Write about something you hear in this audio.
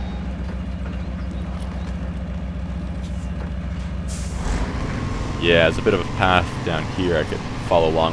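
A heavy truck engine rumbles with a steady low throb.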